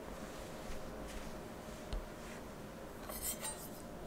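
A fruit is set down on a wooden board with a light knock.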